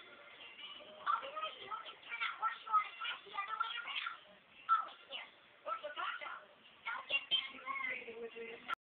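Cartoon voices and music play from a television speaker.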